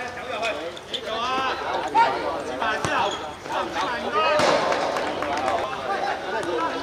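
Several men shout and call out across an open outdoor court.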